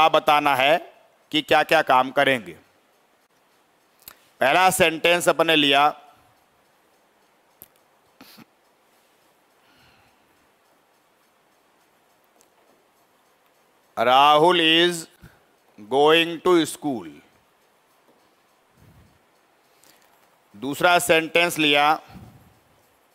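A man speaks calmly into a headset microphone, in short phrases with pauses.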